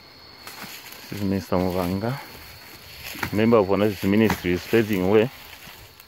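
A machete hacks through leafy bush.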